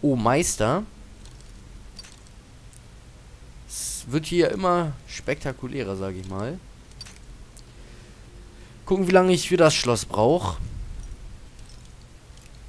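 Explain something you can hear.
A metal lockpick scrapes and clicks inside a lock.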